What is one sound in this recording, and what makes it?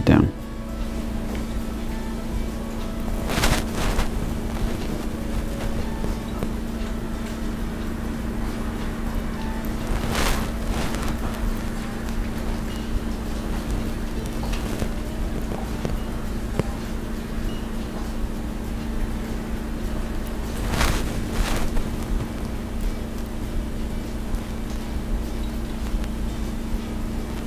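Small glass beads click softly.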